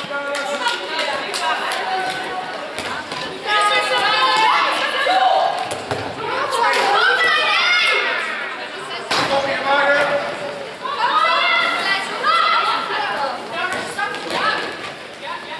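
Young women shout and call out to one another in a large echoing hall.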